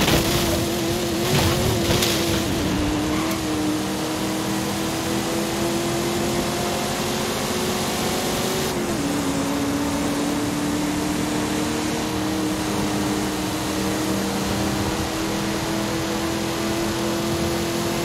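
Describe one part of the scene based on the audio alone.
An old car engine drones steadily as the car speeds up, dropping in pitch briefly as it shifts gear.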